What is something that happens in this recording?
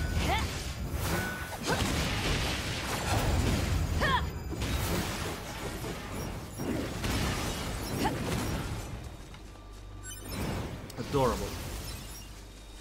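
Blades clash and blasts crack in a fast fight.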